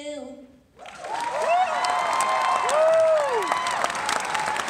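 People in an audience cheer and whoop.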